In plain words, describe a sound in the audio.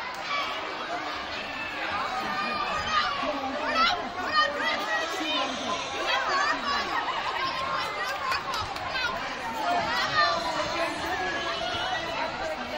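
A crowd of children and adults chatters and shouts loudly in a large echoing gym.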